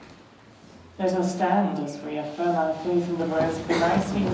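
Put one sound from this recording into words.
A young woman speaks calmly through a microphone.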